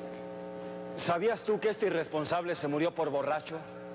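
A man speaks loudly and clearly.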